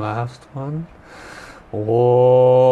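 A man takes a deep breath in.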